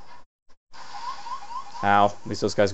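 An electronic warning alarm beeps in short rising tones.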